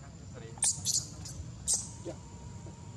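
A baby macaque squeals in short high shrieks.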